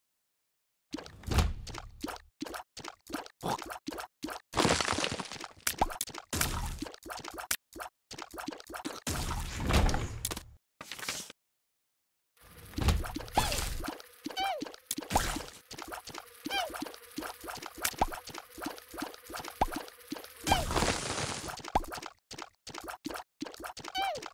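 Quick soft popping shots fire over and over in a game.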